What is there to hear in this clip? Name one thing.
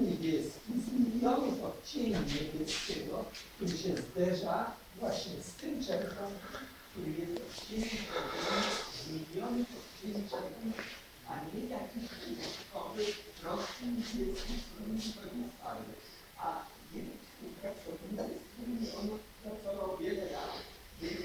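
A man speaks calmly to an audience in a small room, heard from a distance.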